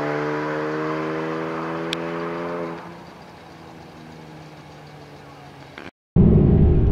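Race car engines roar down a drag strip.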